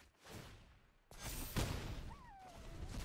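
A bright magical whoosh rings out.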